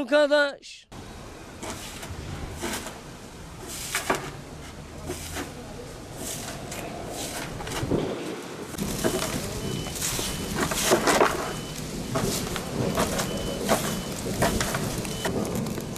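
A broom sweeps and scrapes across the ground.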